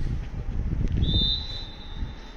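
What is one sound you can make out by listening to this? A referee blows a long, steady whistle outdoors.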